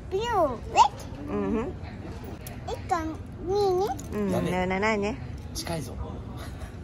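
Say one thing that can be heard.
A young girl talks in a high, playful voice close by.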